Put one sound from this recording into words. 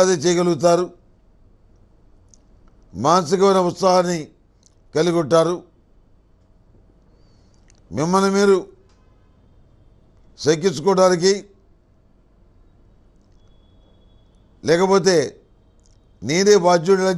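An elderly man speaks calmly and slowly into a close microphone, in short phrases with pauses.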